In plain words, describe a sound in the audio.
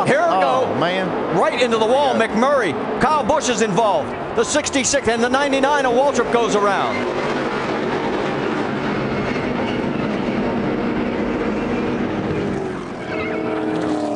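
Car tyres screech as cars spin and skid.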